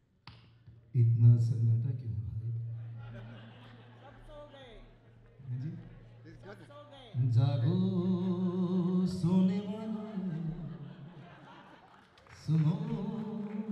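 A live band plays music on stage.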